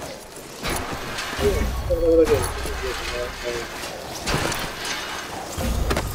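A snowboard grinds along a metal rail.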